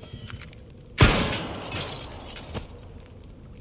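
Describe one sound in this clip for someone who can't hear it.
A pistol shot fires sharply and echoes.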